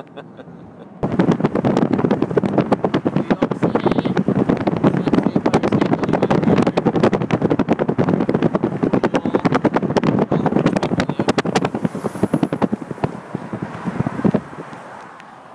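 Wind roars and buffets loudly through an open car window.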